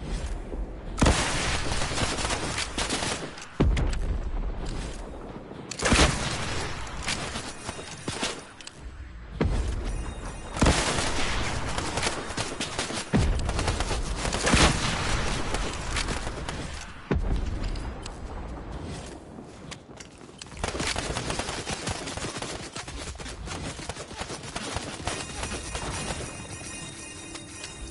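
Explosions boom loudly, one after another.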